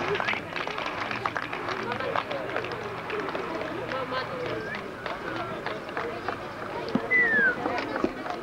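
A crowd of adults and children chatters outdoors nearby.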